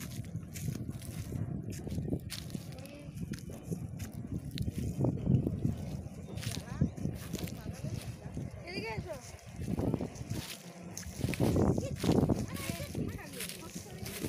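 Footsteps crunch on dry straw.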